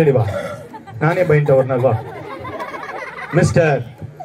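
A second young man answers through a microphone.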